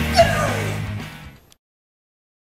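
A teenage boy shouts with excitement close by.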